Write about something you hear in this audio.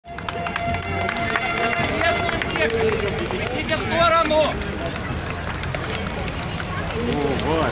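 A large crowd outdoors cheers and claps.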